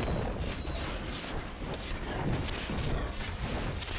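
Magical spells whoosh and crackle in a fight.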